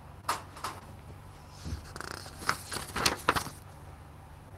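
Pages rustle as a man turns them.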